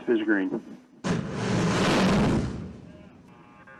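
A rocket launches with a loud, rushing roar.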